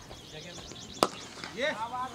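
A cricket bat cracks sharply against a ball.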